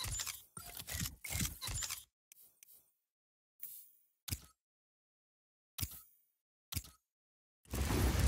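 Short soft clicks tick one after another.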